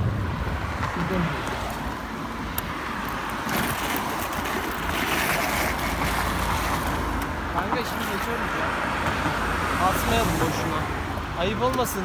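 Wind rushes past loudly while riding outdoors.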